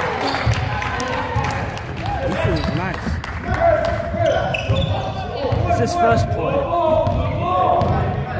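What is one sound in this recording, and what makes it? Young men shout and call out to one another in a large echoing hall.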